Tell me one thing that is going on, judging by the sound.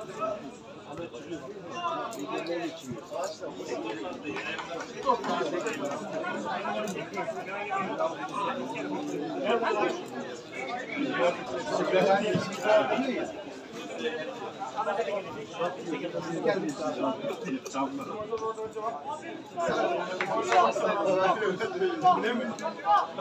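Football players shout and call to each other across an open pitch outdoors.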